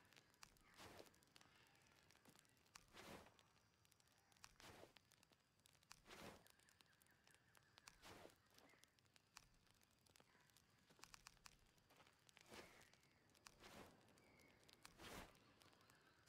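A soft whooshing swish sounds each time a menu selection changes.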